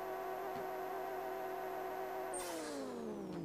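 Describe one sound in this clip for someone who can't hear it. A racing car engine revs loudly at a high, steady pitch.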